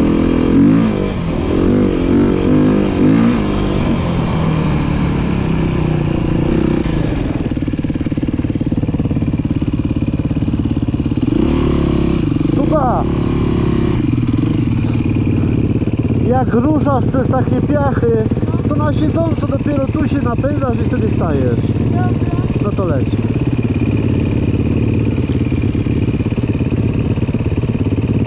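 A dirt bike engine rumbles and revs close by.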